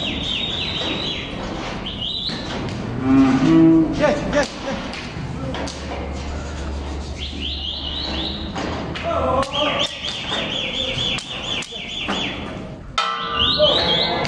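Cattle hooves shuffle and knock on the floor.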